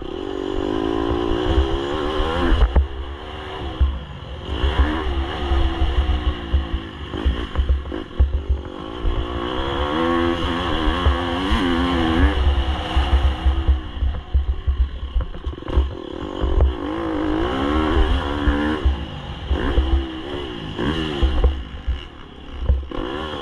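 A motorcycle engine revs up and down loudly, rising and falling as it speeds along a dirt track.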